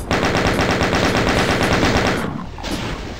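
A machine gun fires in a rapid burst.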